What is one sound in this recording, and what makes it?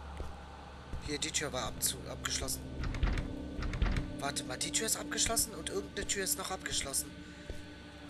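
A locked door handle rattles.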